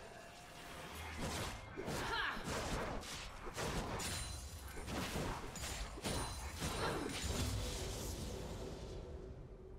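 Spell blasts and weapon hits crackle and crash in a fast fight.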